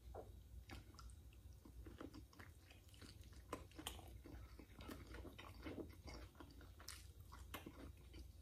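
A man chews food loudly and wetly, close to a microphone.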